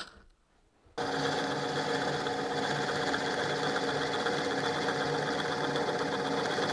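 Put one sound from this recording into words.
A drill press hums steadily.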